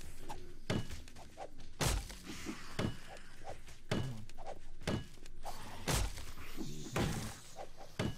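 A pickaxe strikes wood in heavy, regular blows.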